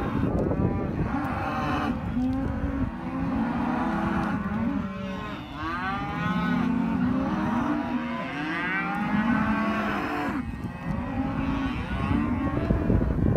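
Cattle hooves shuffle and thud on soft dirt.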